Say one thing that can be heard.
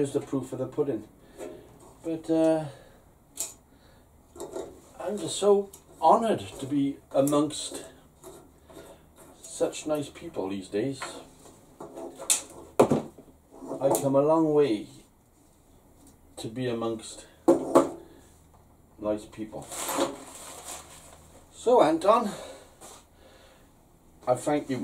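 An elderly man talks calmly and close by.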